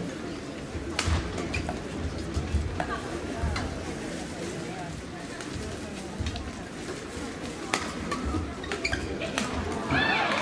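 Rackets strike a shuttlecock with sharp snaps in a large echoing hall.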